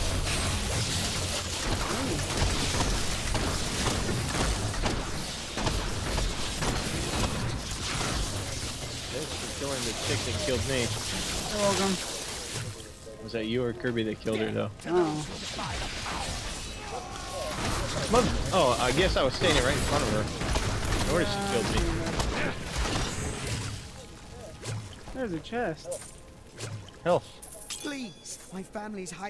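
Magic blasts and weapon hits crash in quick bursts.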